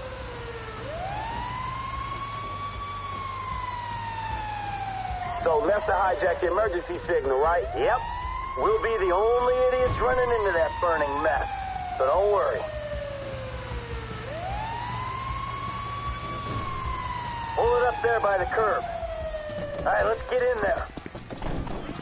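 A fire engine siren wails, rising and falling slowly.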